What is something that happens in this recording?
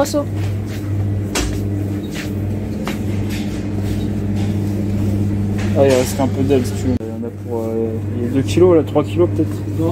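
A refrigerated counter hums steadily.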